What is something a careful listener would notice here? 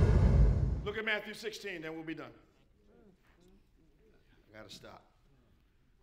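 A man speaks through a microphone in a large echoing hall, pausing often.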